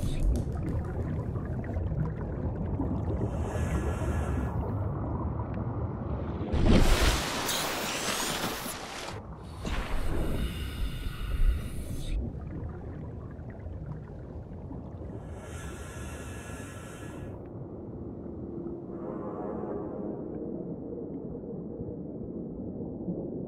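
A low, muffled underwater rumble goes on steadily.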